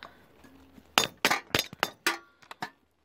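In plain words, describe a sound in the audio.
Small metal parts click and tap as a hand handles them.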